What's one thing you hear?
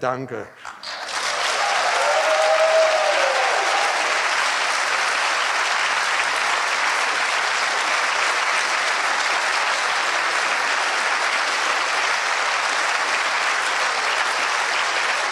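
A large audience applauds steadily.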